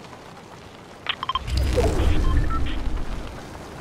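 Soft game menu clicks and chimes sound.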